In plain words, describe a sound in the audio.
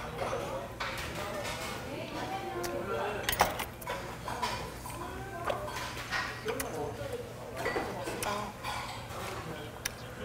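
A man chews food with his mouth closed.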